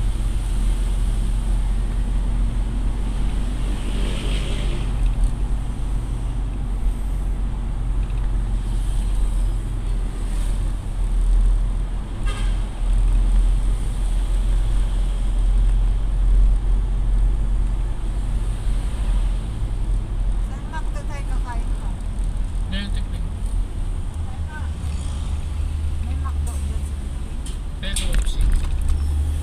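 A car's engine hums steadily as it drives along a road.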